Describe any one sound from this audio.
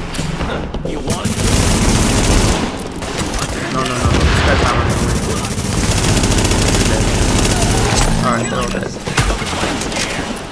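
Rifles fire rapid bursts of gunshots.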